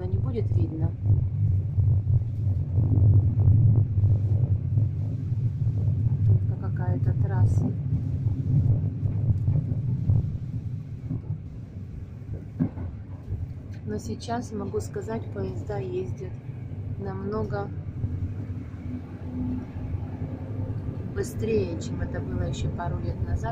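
A train rumbles steadily along the tracks, louder at first and then quieter.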